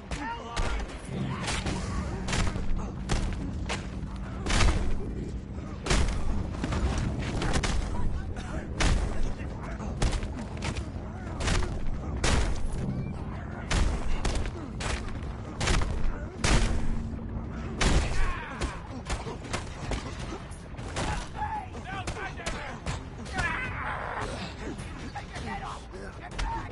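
Fists land with heavy thuds and punches over and over.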